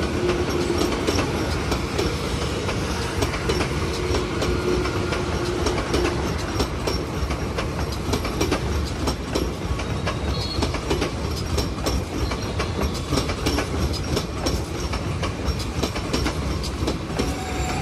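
Train wheels clatter rapidly over rail joints.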